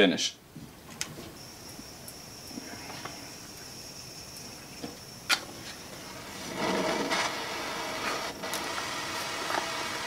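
Small plastic parts click and tap.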